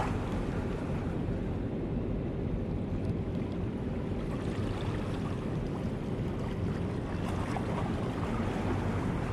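Water laps and splashes softly close by.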